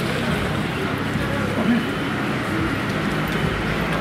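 A broom sweeps a street with scratchy strokes.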